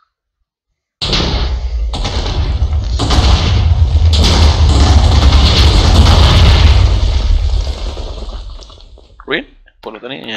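Explosions boom and rumble loudly, then fade.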